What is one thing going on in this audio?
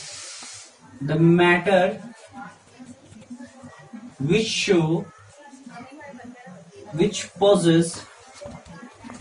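A man speaks calmly, in short phrases, close by.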